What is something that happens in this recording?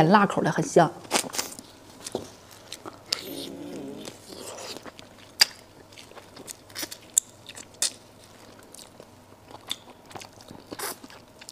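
A young woman chews and slurps food loudly close to a microphone.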